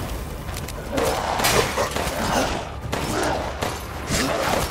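A monster growls and snarls close by.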